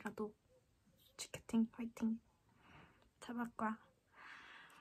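A young woman speaks close up, calmly and in short bursts.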